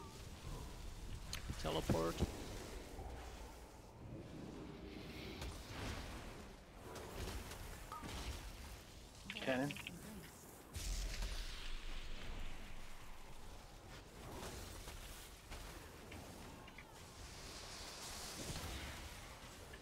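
Fantasy battle sound effects crackle, boom and whoosh.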